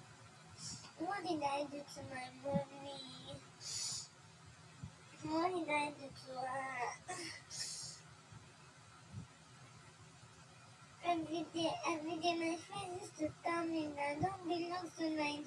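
A young woman speaks tearfully in a shaky voice close by.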